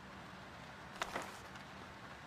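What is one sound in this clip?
A book snaps shut.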